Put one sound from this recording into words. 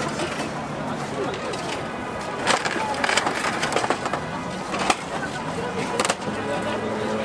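A machine's crank clicks as it turns.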